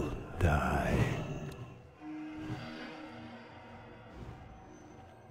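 Fantasy battle sounds clash and whoosh as magic spells are cast.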